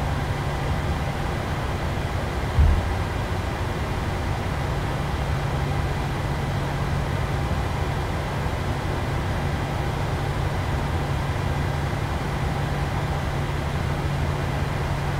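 Jet engines hum steadily as an airliner idles and taxis.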